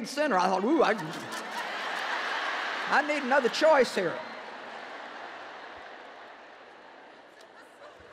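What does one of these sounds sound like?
A large audience laughs and then slowly quiets down.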